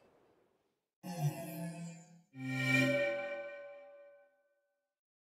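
Bright electronic chimes ring out and fade.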